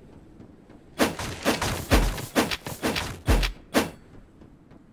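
Sharp hits and slashes land in quick bursts during a fight.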